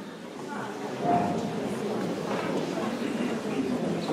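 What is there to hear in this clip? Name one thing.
A young woman speaks softly through a microphone.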